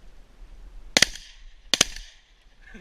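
A shotgun fires twice in quick succession, loud and close.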